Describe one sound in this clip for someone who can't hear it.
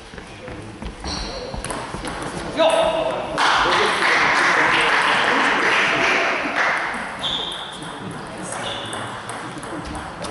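Sports shoes squeak sharply on the hall floor.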